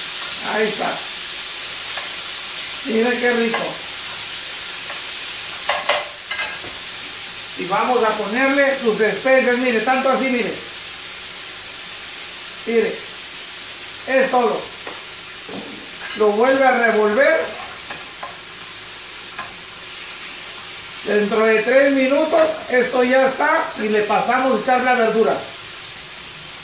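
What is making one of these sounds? Metal tongs scrape and clink against a pan.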